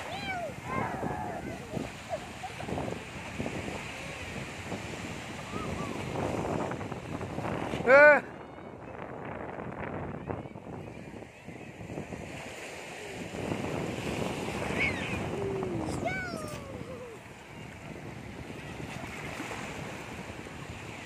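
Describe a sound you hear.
Waves wash and splash around on the shore.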